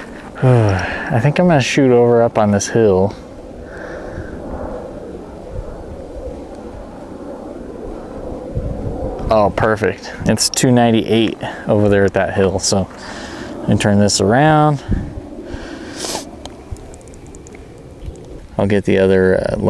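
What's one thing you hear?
A young man talks calmly into a clip-on microphone, close by.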